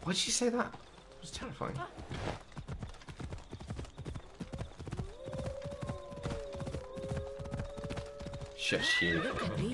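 Horse hooves clop rapidly on the ground.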